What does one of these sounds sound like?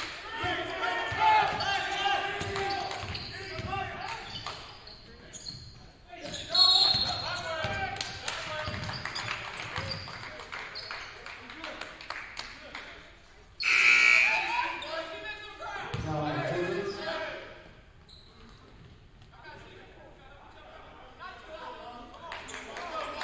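Players shout to each other on the court.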